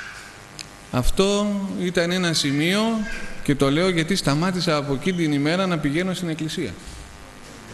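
A middle-aged man speaks calmly into a microphone, heard through a loudspeaker.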